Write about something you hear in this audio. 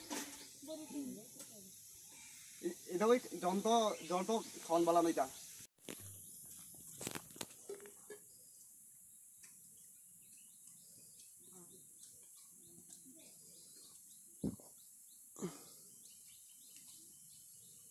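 Metal water pots clink as a woman sets them down.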